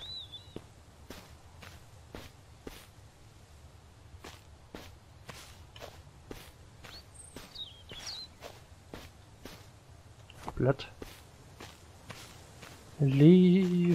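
Footsteps tread steadily over grass and ground.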